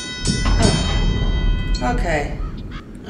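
A short bright game jingle rings out.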